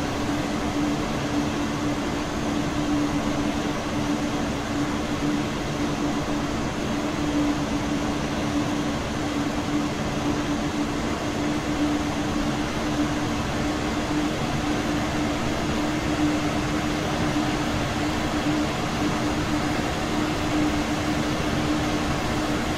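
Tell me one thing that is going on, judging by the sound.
An electric train motor hums with a steady low drone.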